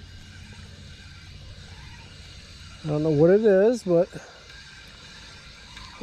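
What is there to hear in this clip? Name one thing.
A fishing reel whirs as its handle is wound.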